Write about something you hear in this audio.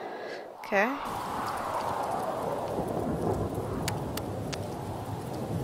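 Rain falls steadily with a soft, even hiss.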